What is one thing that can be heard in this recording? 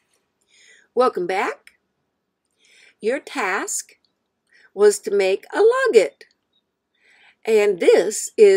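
An elderly woman speaks calmly and clearly into a close microphone, in short phrases with pauses.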